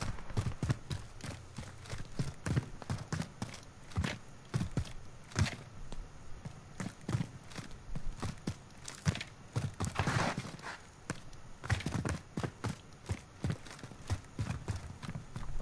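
Quick footsteps thud across a hard floor.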